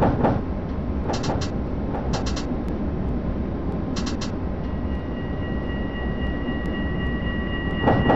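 A tram rumbles steadily along rails.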